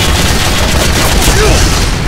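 An automatic gun fires rapid bursts.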